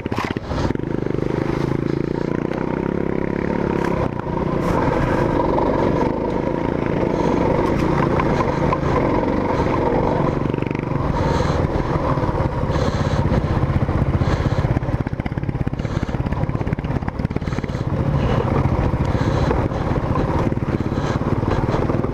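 A motorcycle engine rumbles and revs steadily up close.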